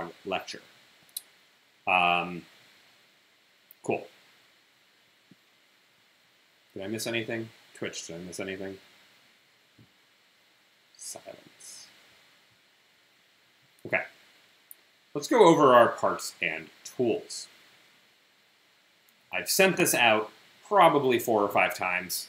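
A man speaks calmly and haltingly, close to a microphone, with long pauses.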